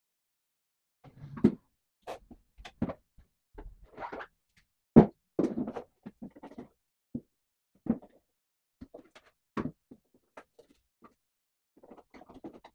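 Plastic track pieces scrape and click together.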